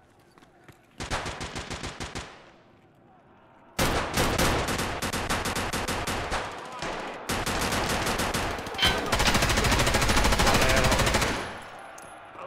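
Rapid bursts of gunfire rattle loudly.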